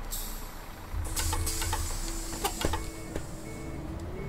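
Bus doors hiss and clunk shut.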